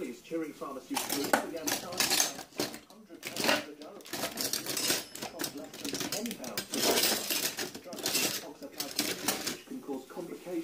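Metal cutlery and utensils clink and rattle in a drawer.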